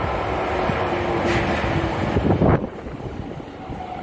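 A train rolls in alongside the platform and brakes.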